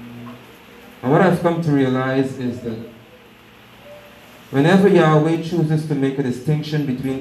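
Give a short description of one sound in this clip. A man speaks calmly and loudly through a microphone and loudspeaker.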